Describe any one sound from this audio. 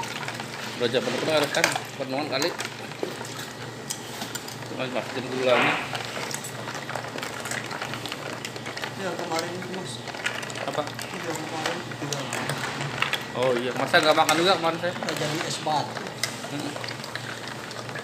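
Liquid pours in a thin stream into a container of liquid.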